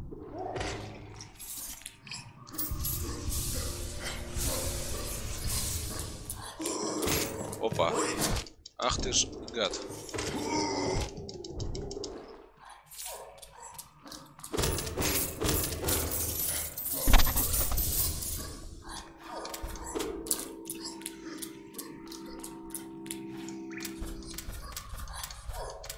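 Game sounds of slashing and impacts ring out.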